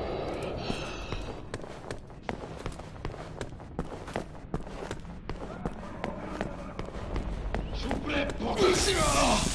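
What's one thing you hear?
Footsteps tap steadily on a hard floor.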